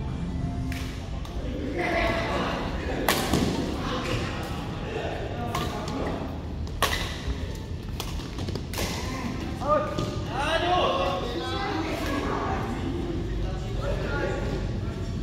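Men call out and talk in a large echoing hall.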